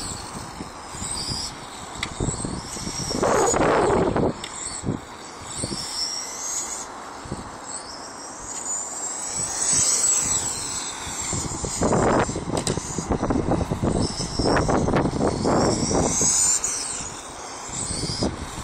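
Wind buffets outdoors in gusts.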